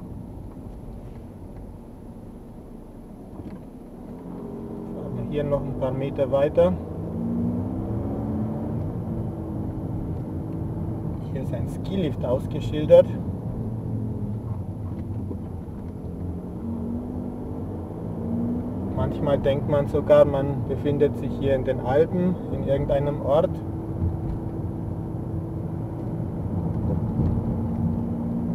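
A car engine hums and rises and falls in pitch as the car drives along.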